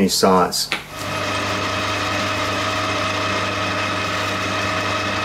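A lathe motor hums steadily as the chuck spins.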